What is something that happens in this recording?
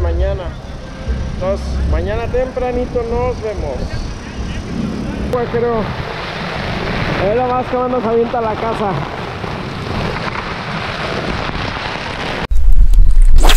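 Waves wash onto a beach in a steady rush.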